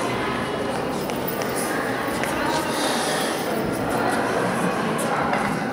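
A woman speaks calmly to children.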